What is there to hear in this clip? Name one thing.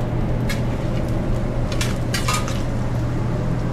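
Meat sizzles loudly on a hot griddle.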